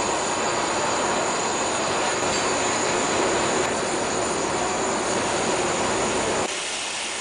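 A gas burner roars steadily.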